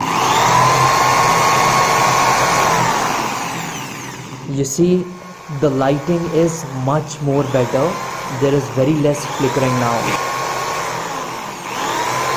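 An electric drill whirs loudly and winds down, starting up again later.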